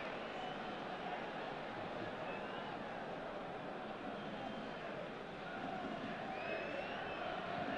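A large crowd murmurs and roars steadily in an open stadium.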